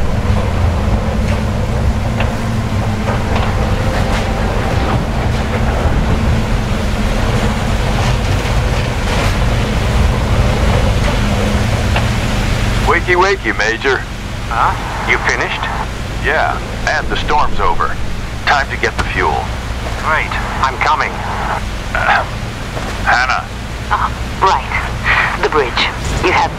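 A tank engine rumbles deeply.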